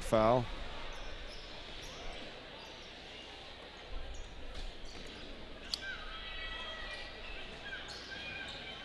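A crowd murmurs in a large echoing arena.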